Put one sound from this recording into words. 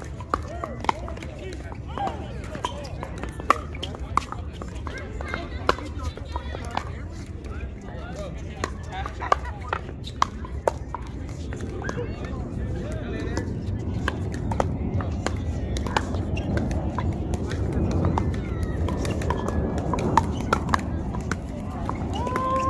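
Pickleball paddles hit a plastic ball outdoors with sharp pops.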